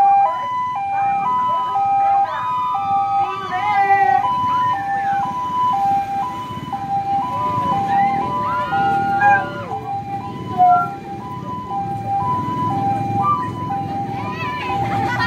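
Children and young people shout and cheer outdoors.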